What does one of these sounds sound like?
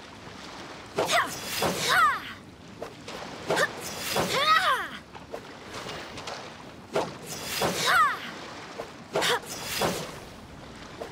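A sword swings and whooshes with bright magical chimes.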